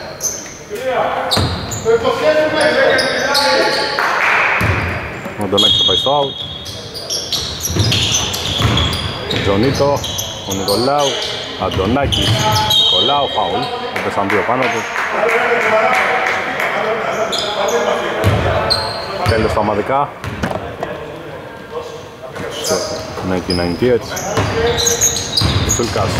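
A basketball bounces with thuds that echo through a large empty hall.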